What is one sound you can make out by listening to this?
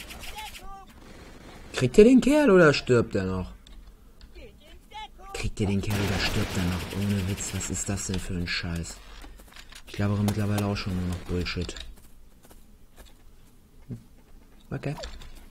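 Sniper rifle shots crack in a video game.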